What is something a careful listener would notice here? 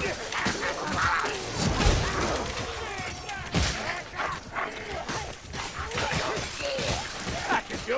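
Weapons slash and thud against enemies.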